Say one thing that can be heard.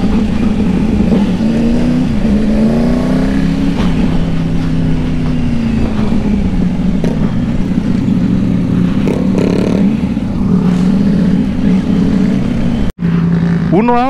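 A motorcycle engine hums and revs while riding.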